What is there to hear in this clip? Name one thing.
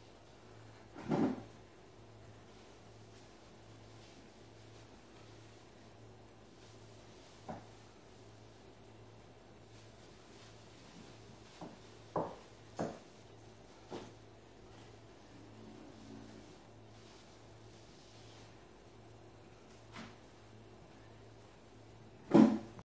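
Dishes clink and clatter at a counter.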